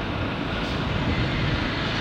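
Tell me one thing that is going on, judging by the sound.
Traffic rumbles along a city street.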